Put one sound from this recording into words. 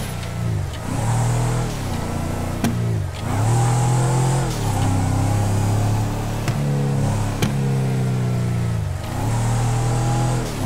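An engine revs up and down repeatedly.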